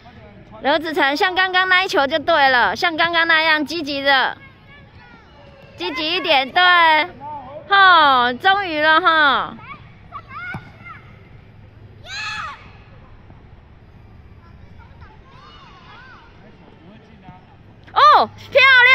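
Young children shout excitedly across an open field.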